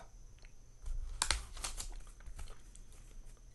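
Paper pages of a notebook rustle as they are turned.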